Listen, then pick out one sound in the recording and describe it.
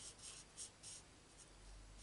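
A marker scratches on card stock.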